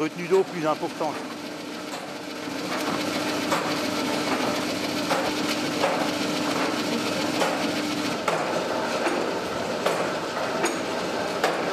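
Wooden gears turn with a steady rumbling clatter and clicks.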